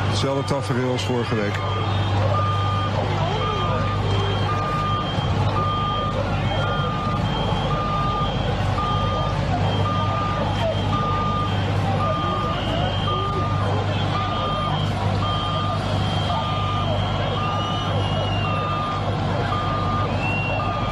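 A large crowd shouts and murmurs outdoors.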